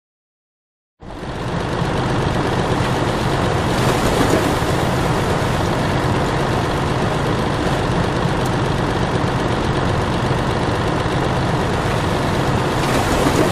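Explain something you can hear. A combine harvester engine rumbles steadily.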